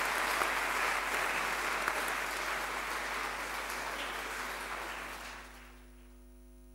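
An audience applauds in a large hall, then the applause fades.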